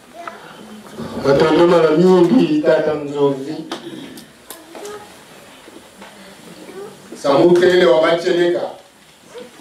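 A man speaks with animation through a microphone and loudspeaker in an echoing room.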